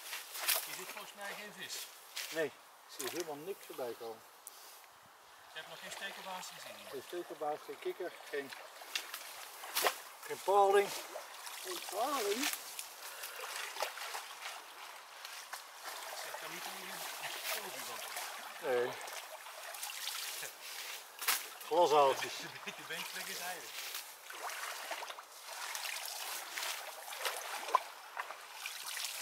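A rake scrapes and splashes through shallow water and mud.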